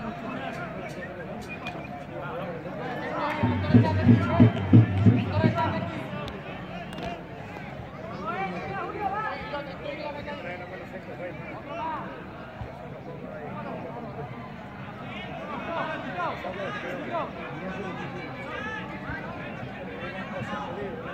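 A crowd of spectators chatters in the distance.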